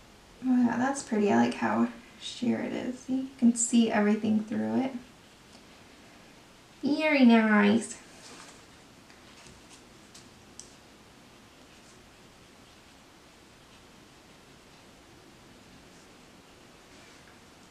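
A paintbrush softly brushes across paper.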